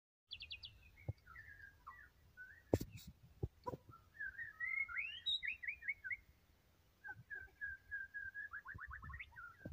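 A songbird sings close by in a varied series of chirps, whistles and trills.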